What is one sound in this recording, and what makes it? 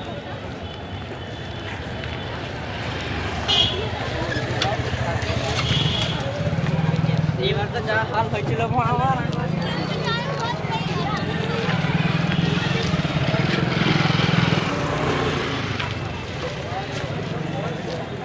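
Motorcycle engines hum nearby.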